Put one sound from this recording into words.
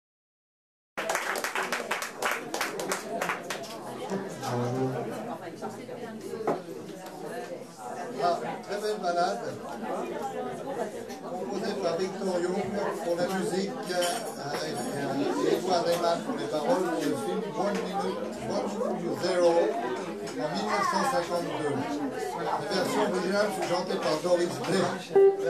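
A piano plays jazz chords.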